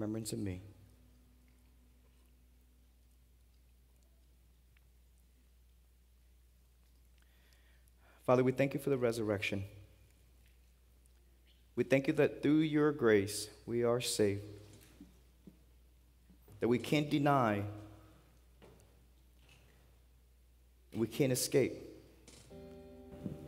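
A man speaks slowly and earnestly through a microphone in a large echoing room, with long pauses.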